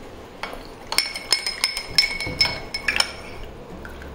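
A metal spoon clinks against a glass while stirring.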